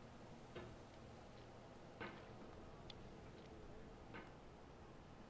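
A hammer clanks against rock.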